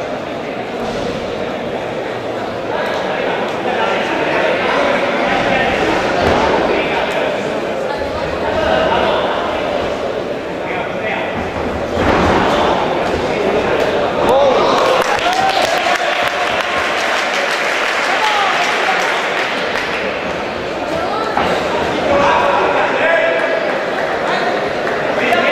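A crowd shouts and cheers in an echoing indoor hall.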